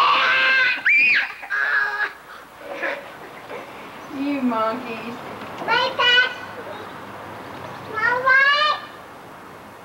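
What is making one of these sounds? A woman talks in a high, lively voice close by.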